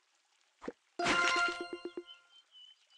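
A bright game chime jingles with a quick run of notes.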